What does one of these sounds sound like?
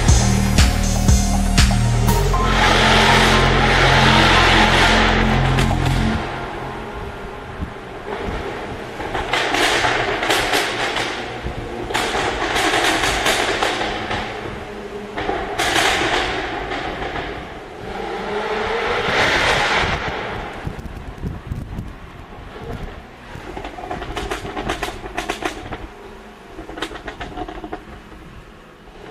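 A sports car engine roars and revs hard, echoing in a tunnel.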